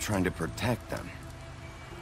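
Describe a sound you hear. A man speaks calmly and quietly.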